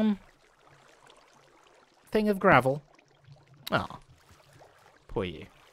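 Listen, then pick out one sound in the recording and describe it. Water trickles and splashes nearby.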